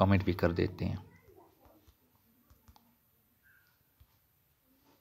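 A phone keyboard clicks softly as keys are tapped.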